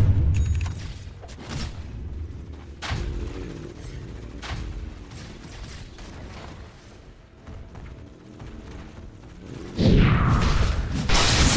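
Game spell effects crackle and whoosh in bursts.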